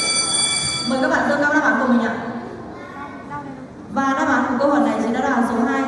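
A group of young children chant loudly together.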